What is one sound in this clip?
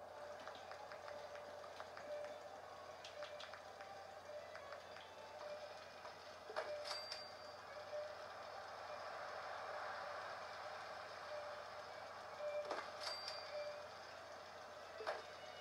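Short menu clicks and chimes play from a television speaker.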